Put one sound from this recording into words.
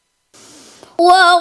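A young woman chants a recitation in a long, wavering melody through a microphone.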